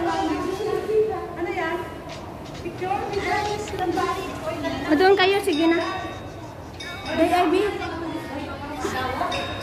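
A middle-aged woman talks with animation, close to the microphone.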